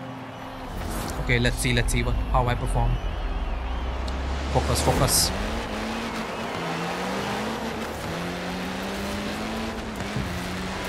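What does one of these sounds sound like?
A racing car engine hums and revs as it speeds up.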